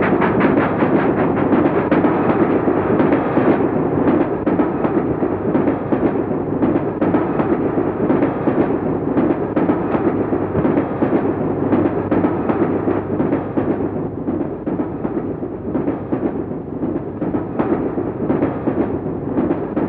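A train rattles along with a steady, rhythmic clatter.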